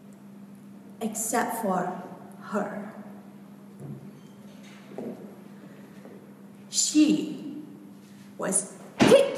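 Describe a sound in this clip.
A woman speaks with animation through a headset microphone and loudspeaker in a large room.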